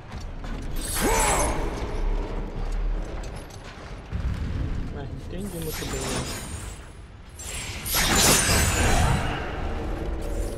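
Magical energy blasts crackle and whoosh in bursts.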